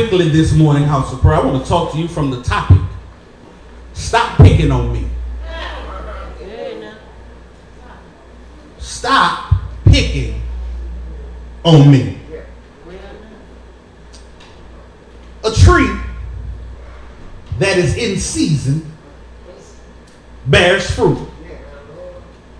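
A man preaches through a microphone and loudspeakers in an echoing hall, speaking in loud, emphatic bursts with pauses.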